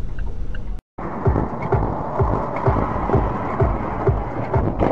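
A car engine drones with road noise.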